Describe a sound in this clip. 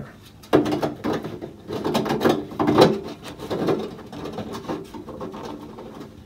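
A hand rubs and knocks against a plastic pipe.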